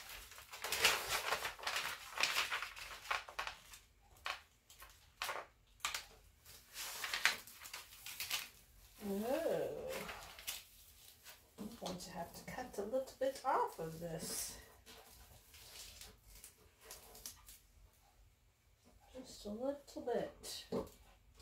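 Paper rustles and crinkles as hands smooth it down.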